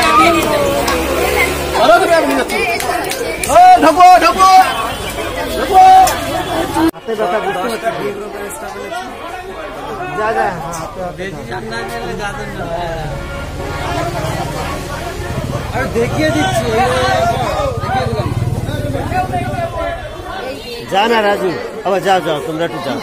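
A crowd of men and women talk and call out close by, outdoors.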